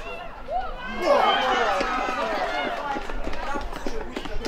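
A small crowd of men cheers loudly.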